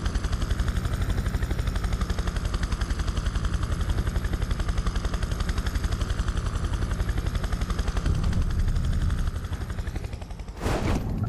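A helicopter's rotor thumps rapidly and steadily overhead.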